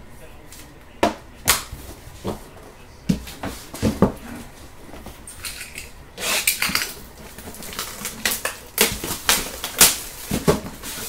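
Cardboard and plastic packaging rustle and click as hands handle it.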